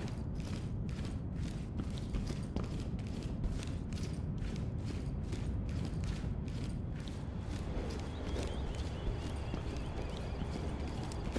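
Footsteps tread quickly and steadily on a hard floor.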